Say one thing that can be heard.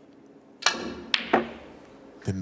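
Snooker balls knock together with a crisp clack.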